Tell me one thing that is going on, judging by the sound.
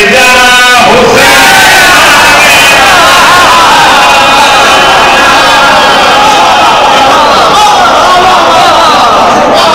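A crowd of men chant along loudly in an echoing hall.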